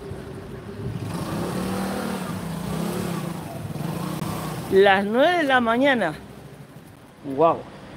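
A motorcycle engine rumbles as it rides past nearby.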